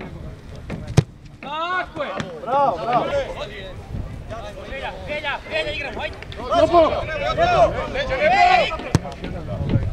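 A football is kicked with a sharp thump.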